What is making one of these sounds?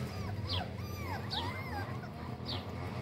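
Young puppies whimper and whine.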